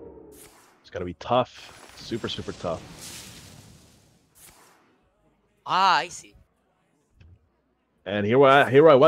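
A young man speaks animatedly into a microphone.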